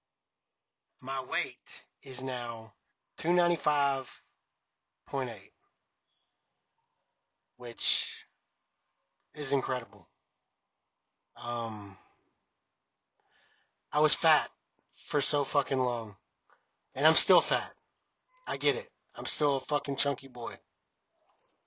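A young man talks calmly and close up into a headset microphone, in short bursts with pauses.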